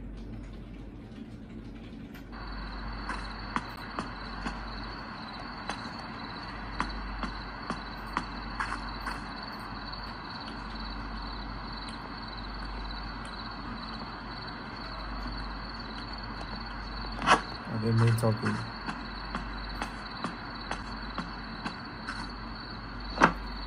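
Fingers tap lightly on a touchscreen.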